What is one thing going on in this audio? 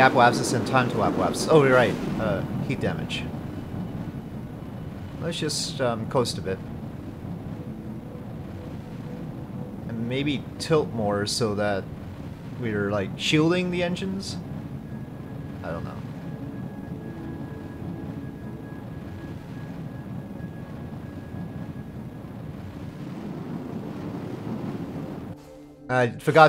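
A rocket engine rumbles steadily.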